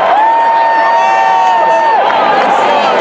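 A marching band plays a loud, held brass chord in a large open stadium.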